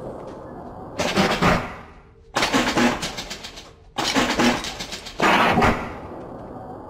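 A mechanical vending machine whirs and clatters as it dispenses items.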